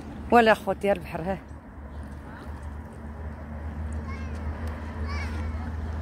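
Small waves lap against rocks.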